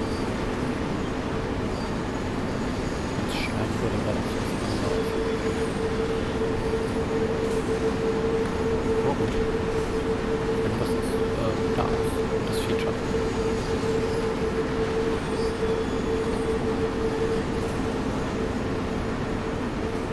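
An electric locomotive hums steadily as it runs.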